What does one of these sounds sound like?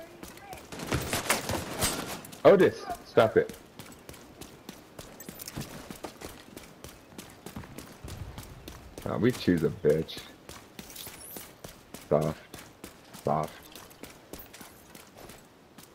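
Footsteps run over wet, littered ground.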